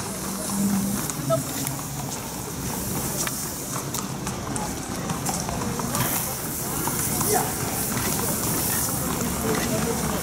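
Water sprays from a garden hose onto a horse.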